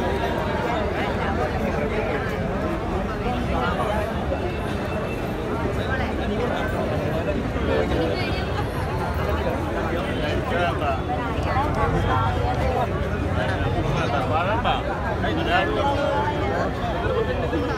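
A crowd of men and women chatter loudly close by.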